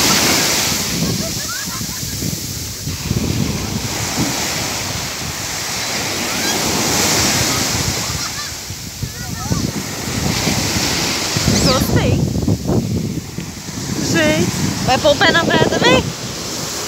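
Waves wash and break on the shore steadily.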